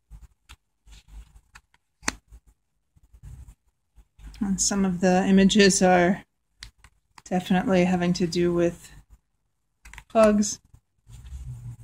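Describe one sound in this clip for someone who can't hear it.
Playing cards slide and tap softly against each other.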